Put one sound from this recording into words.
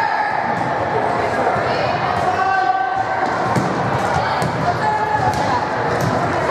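Teenage girls shout calls to each other across the court.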